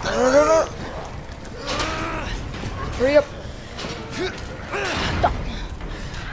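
A heavy metal gate clanks shut.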